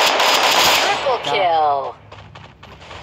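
A short victory jingle plays.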